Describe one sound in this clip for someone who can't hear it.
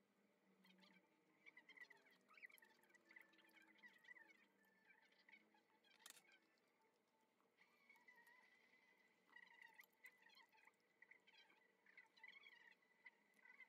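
A metal spoon clinks and scrapes against a ceramic bowl.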